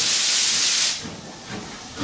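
A steam locomotive hisses loudly as steam vents.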